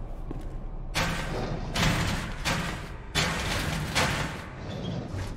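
A heavy metal drawer scrapes and rumbles as it slides open.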